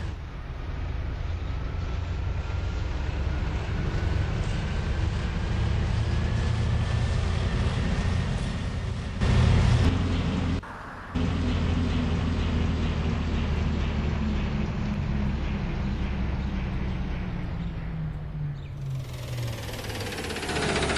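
A bus engine drones steadily and its whine slowly rises in pitch.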